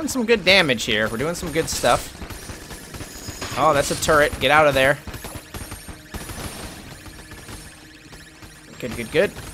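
A video game laser beam hums as it fires.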